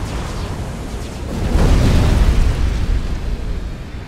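Explosions boom in a battle.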